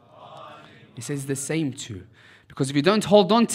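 A young man chants loudly into a microphone, his voice rising and falling.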